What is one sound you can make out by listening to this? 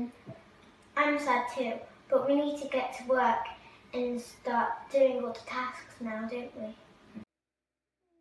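A young girl talks calmly nearby.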